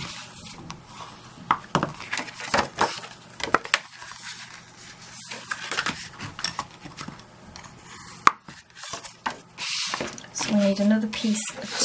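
Paper rustles and slides as sheets are handled.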